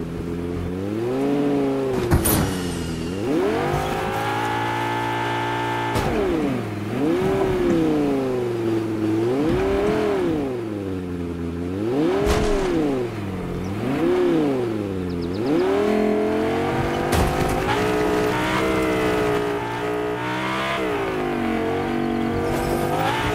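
A car engine revs up and down as a car drives over rough ground.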